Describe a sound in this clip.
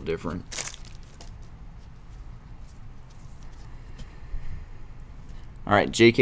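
A plastic card sleeve crinkles and rustles as it is handled.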